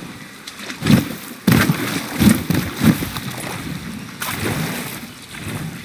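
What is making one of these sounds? Water laps and splashes against a boat's hull.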